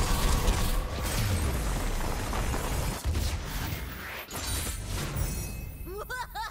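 A magical blast roars and rumbles loudly.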